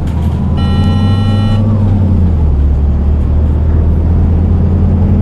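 A bus engine hums low and steady as the bus drives along.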